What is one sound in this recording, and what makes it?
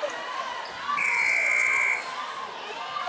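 A referee blows a long whistle blast.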